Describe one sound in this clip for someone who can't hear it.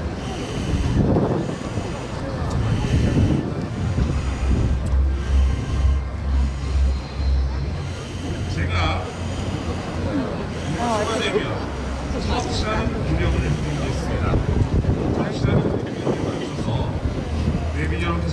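Wind blows steadily and buffets the microphone outdoors.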